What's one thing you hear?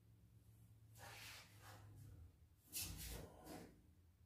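A sheet metal panel scrapes and rattles as it is shifted by hand.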